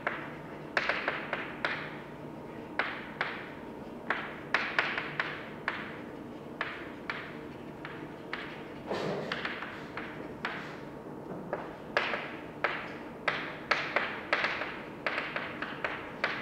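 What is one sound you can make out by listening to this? Chalk taps and scratches on a blackboard in a quiet, echoing room.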